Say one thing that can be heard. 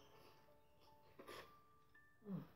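Chopsticks clink against a ceramic bowl.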